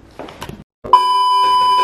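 A steady high test tone sounds loudly.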